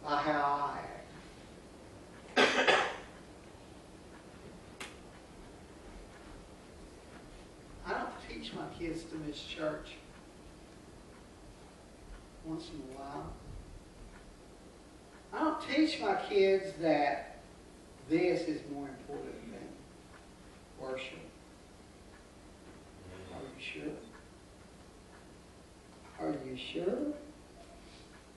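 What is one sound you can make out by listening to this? A middle-aged man speaks with animation through a microphone, pausing often.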